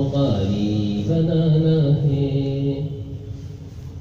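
A man sings a melodic recitation into a microphone, heard through a loudspeaker in an echoing room.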